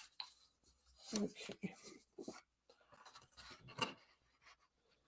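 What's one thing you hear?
Paper rustles and slides on a tabletop.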